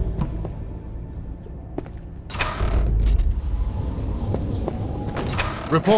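Footsteps tread on a hard stone floor.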